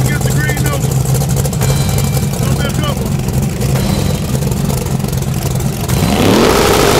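A car engine idles with a deep rumble.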